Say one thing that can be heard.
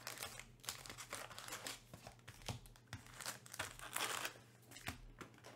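Foil card packs crinkle and rustle as they are handled.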